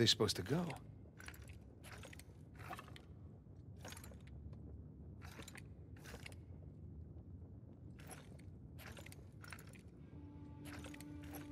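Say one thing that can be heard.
Stone tiles click and scrape as they turn.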